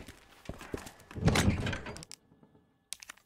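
A heavy lid creaks open.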